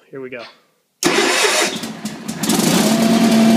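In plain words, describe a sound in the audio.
A small engine cranks and sputters as it starts.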